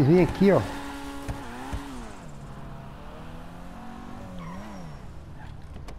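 A car engine revs and hums as the car drives off.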